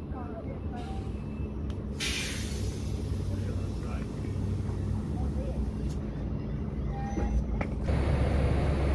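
A train rolls past close by with a steady rumble.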